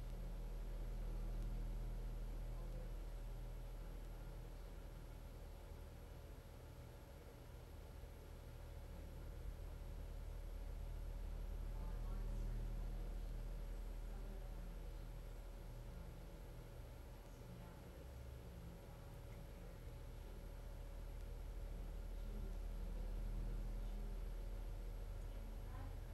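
A chair motor hums low and steadily, slowly swelling and fading.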